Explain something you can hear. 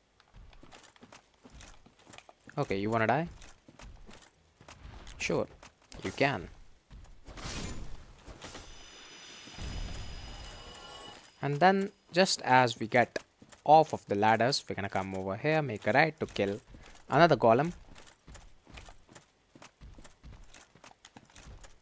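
Armored footsteps clank on soft ground.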